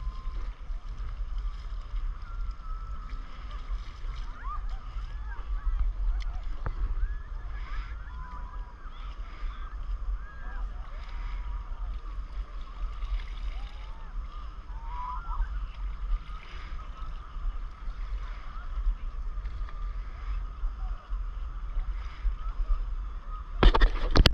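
Paddles dip and splash in calm water.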